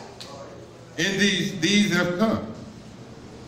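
A man speaks loudly through a loudspeaker in an echoing room.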